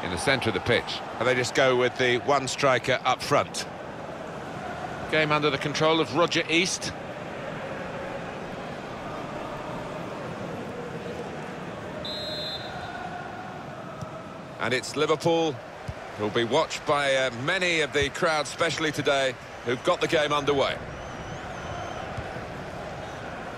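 A large stadium crowd murmurs steadily in the background.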